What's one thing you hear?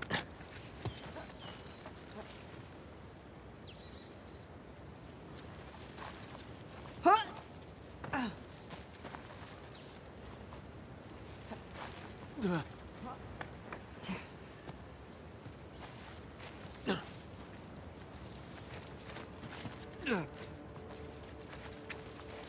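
Footsteps scuff on rock.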